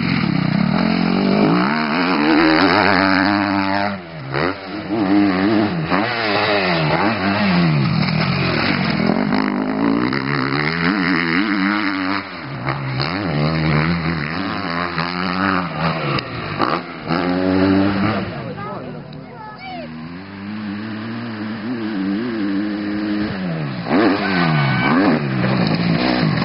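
A dirt bike engine revs loudly, its pitch repeatedly rising and falling.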